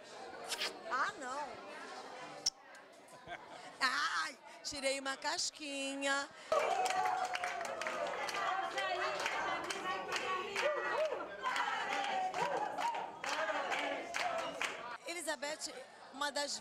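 A woman speaks loudly into a microphone.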